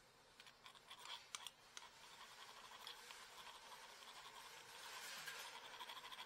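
A hammer taps on metal.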